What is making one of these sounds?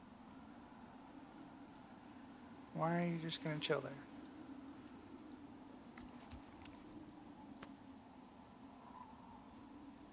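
A torch flame crackles softly.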